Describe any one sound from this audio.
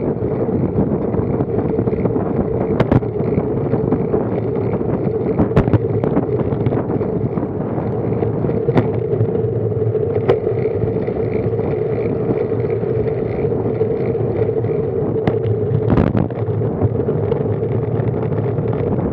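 Wind rushes past a bike-mounted microphone.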